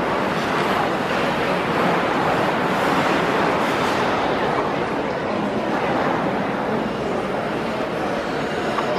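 Ice skates glide and scrape across the ice.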